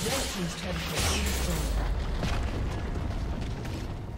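A tower crumbles with a heavy crash.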